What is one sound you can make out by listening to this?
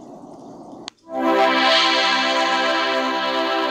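A victory jingle plays loudly.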